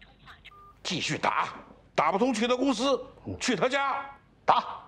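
An older man speaks firmly nearby.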